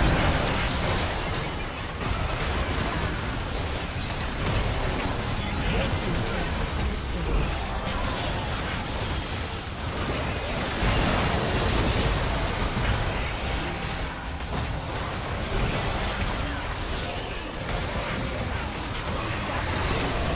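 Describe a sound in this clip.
Magic spells blast and crackle in a hectic battle.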